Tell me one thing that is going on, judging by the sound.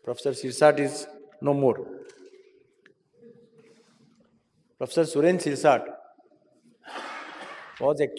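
An elderly man speaks through a microphone in measured bursts with pauses.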